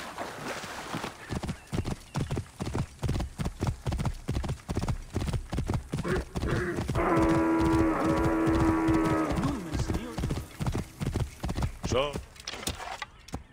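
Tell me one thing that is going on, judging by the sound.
Horse hooves pound quickly on a dirt track.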